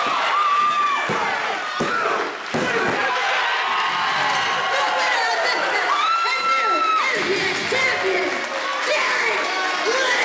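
A crowd cheers and shouts loudly in an echoing hall.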